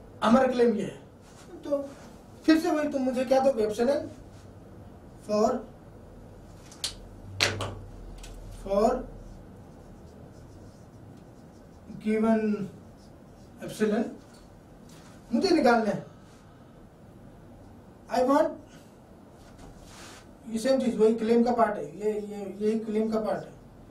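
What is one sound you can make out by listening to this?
A man lectures calmly, speaking in short phrases close by.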